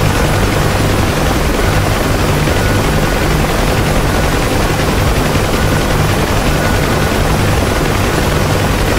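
A helicopter's engine and rotor drone loudly and steadily from inside the cabin.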